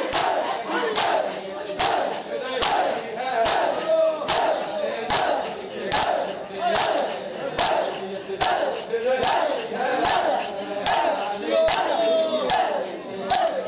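A crowd of men chant together loudly.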